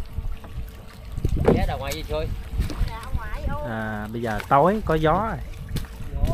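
Water splashes nearby.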